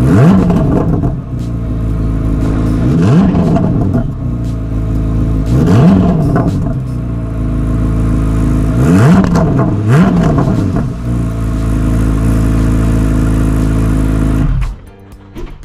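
A sports car engine idles with a deep, loud rumble close by.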